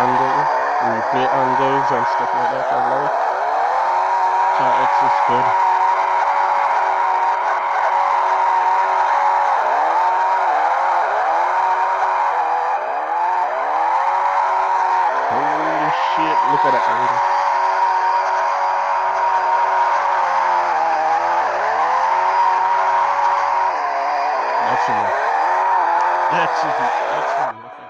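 A car engine revs high and rises and falls in pitch as it drifts.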